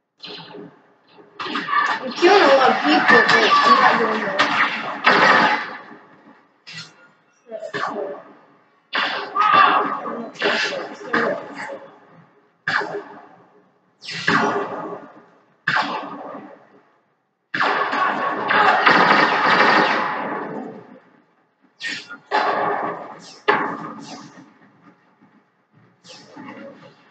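Video game gunfire bursts loudly from a television speaker in short, repeated rounds.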